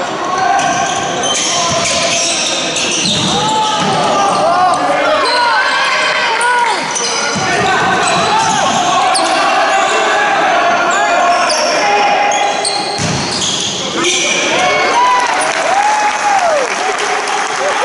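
Young men shout and call out in an echoing hall.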